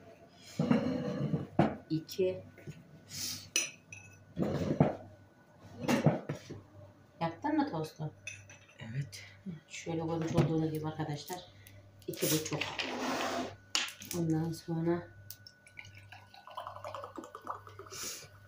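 Hands squish and knead dough in a bowl.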